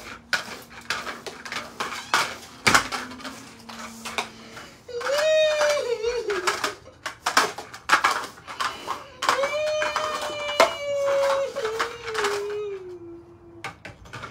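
A broom sweeps briskly with rustling, scratchy strokes.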